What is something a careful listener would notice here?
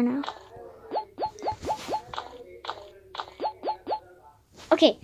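Short rising electronic blips sound in quick succession, like a game's jump effects.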